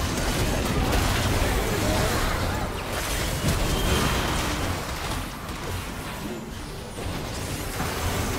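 Magic spell effects crackle and whoosh in a fast fight.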